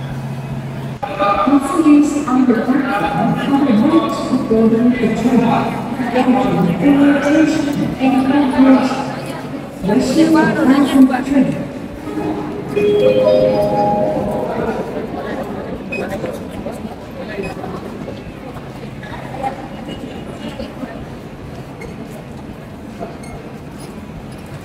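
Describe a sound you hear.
A crowd of men and women chatters nearby.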